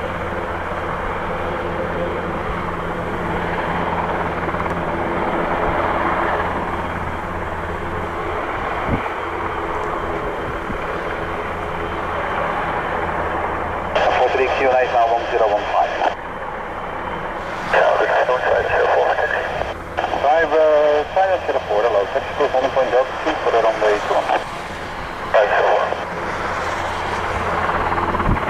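Helicopter rotor blades whoosh as they turn.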